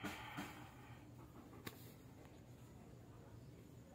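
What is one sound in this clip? A phone is set down on a hard surface with a soft knock.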